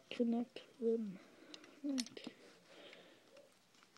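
Plastic toy bricks click against each other.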